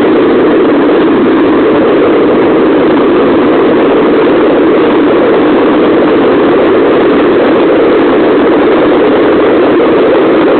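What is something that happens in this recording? Skateboard wheels roll loudly and steadily over rough asphalt.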